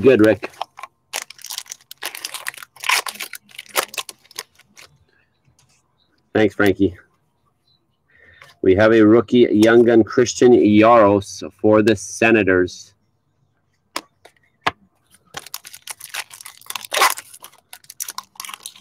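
Trading cards rustle and slide against each other as a hand flips through a stack.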